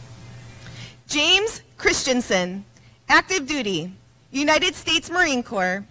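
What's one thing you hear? A woman announces through a loudspeaker, echoing in a large hall.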